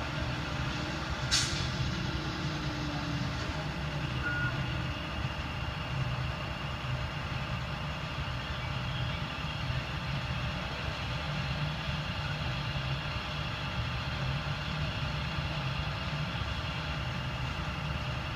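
A tow truck engine idles with a steady low rumble nearby.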